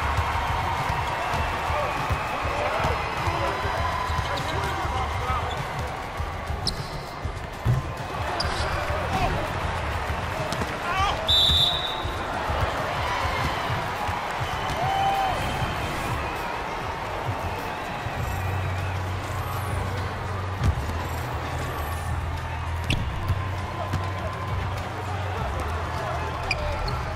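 A crowd murmurs and cheers.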